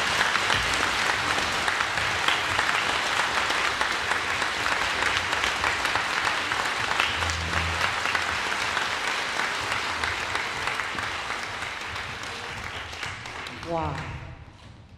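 An audience applauds steadily in a large echoing hall, then the clapping fades.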